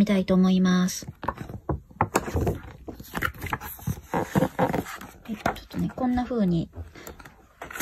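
Paper pages rustle and flap as a magazine is leafed through.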